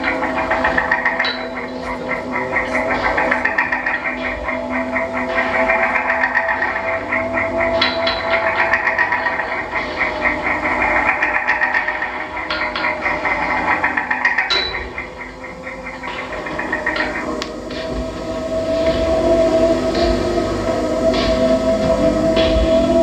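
Loud electronic music plays through speakers, with steady droning tones and crackling bursts.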